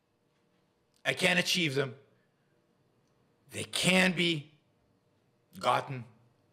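An older man speaks calmly and close to a microphone, in short phrases with pauses.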